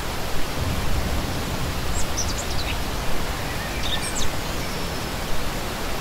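A shallow stream rushes and splashes steadily over rocks.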